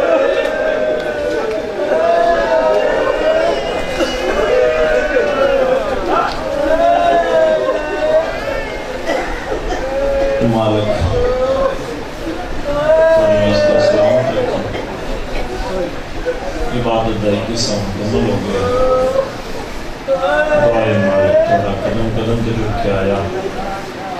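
A young man chants a mournful recitation through a microphone, loud in an echoing hall.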